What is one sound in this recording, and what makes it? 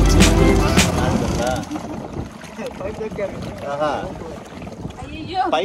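Water churns and splashes behind a moving boat.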